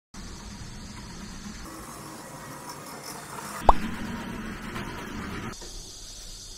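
A garage door rolls up with a rattling rumble.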